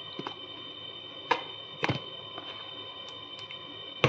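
A plastic squeeze bottle is handled with soft clicks and crinkles.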